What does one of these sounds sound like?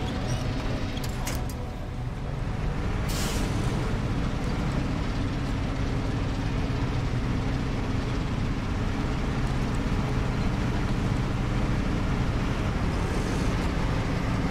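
Tyres crunch through snow.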